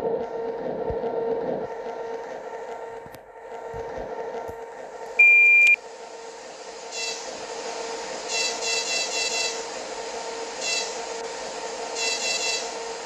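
An electric train's motor hums steadily as the train rolls along.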